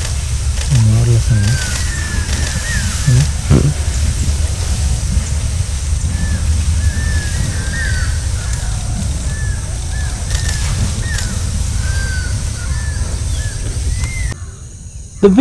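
An elephant tears and munches grass close by.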